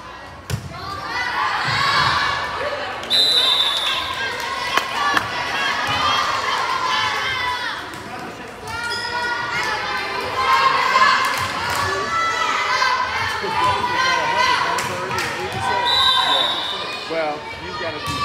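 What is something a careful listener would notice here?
A crowd of young spectators cheers and shouts in a large echoing hall.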